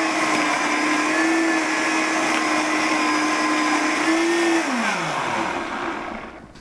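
A blender whirs loudly and then winds down.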